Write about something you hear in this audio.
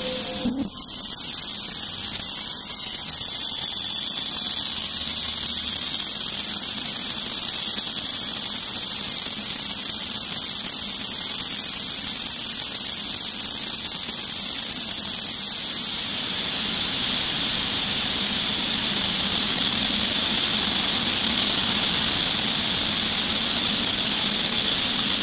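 A granular synthesizer plays a droning electronic texture that swells louder partway through.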